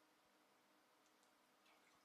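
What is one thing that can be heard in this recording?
A man gulps a drink.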